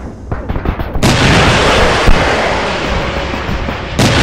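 Shells explode with a loud, rumbling roar.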